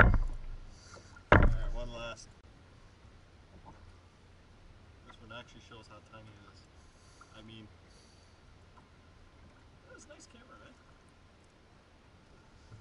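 Water laps softly against a boat.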